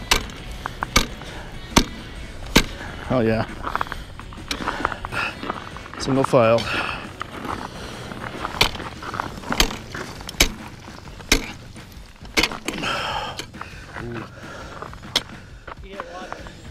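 Skate blades scrape and click across ice in a steady rhythm.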